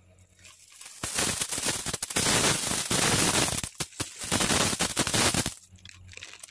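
Coins pour out of a plastic bag with a loud jingling rush.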